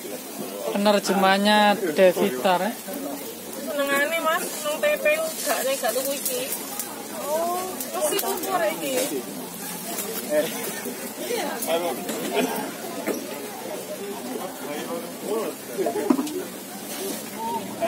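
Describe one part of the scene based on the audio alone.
Batter sizzles softly on a hot griddle.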